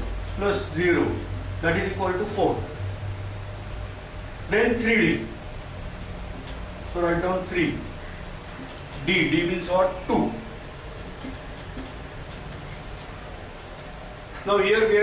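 A man speaks calmly in short phrases, explaining, close by.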